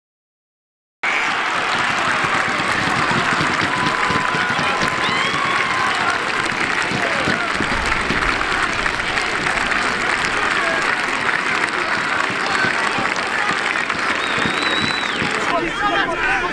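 A large football crowd cheers and roars outdoors.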